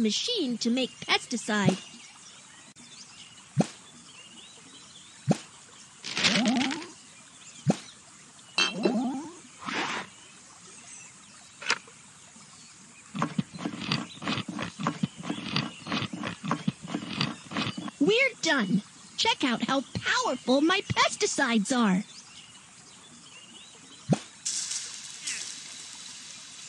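Cartoon game sound effects chime and pop.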